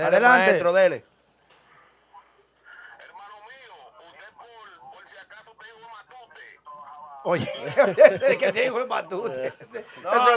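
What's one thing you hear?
A young man laughs into a close microphone.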